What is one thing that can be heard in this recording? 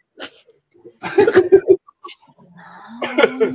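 A woman laughs loudly over an online call.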